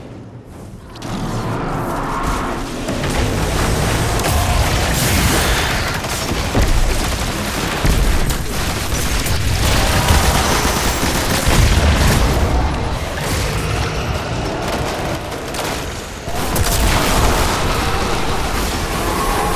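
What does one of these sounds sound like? Gunfire and explosions crackle and boom in a loud battle.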